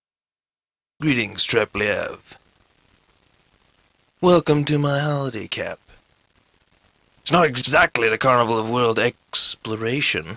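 A man speaks with animation, close up.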